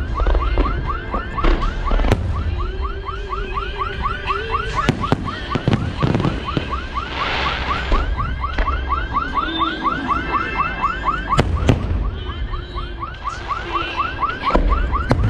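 Fireworks bang and boom loudly overhead.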